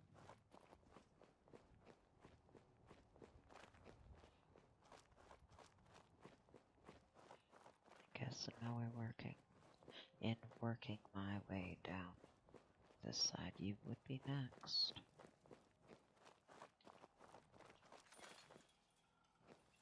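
Footsteps crunch steadily over gravel and debris.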